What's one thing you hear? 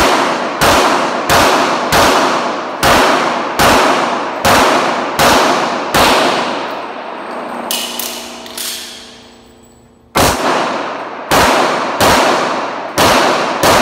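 Pistol shots fire in quick succession and ring out through a large echoing hall.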